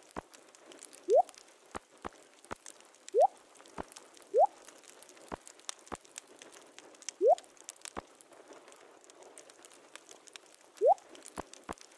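Short rising pops sound as game items are moved.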